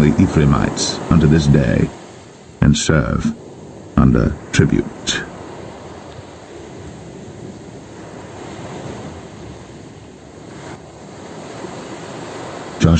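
Waves wash onto a pebble beach.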